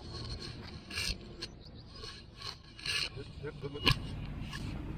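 Shoes scuff and crunch on dry grass.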